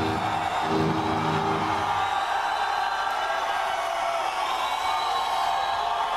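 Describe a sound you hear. A large crowd cheers and screams in an echoing arena.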